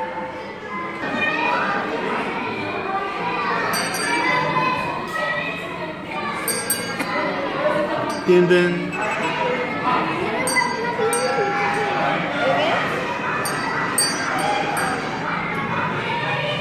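A children's ride plays a jingly tune.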